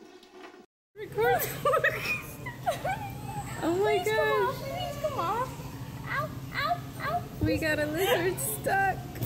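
A young girl sings up close.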